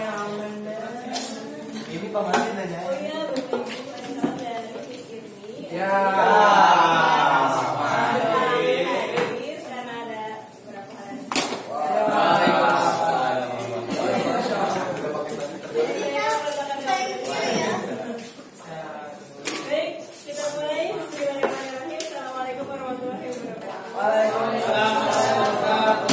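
A woman speaks clearly to a group.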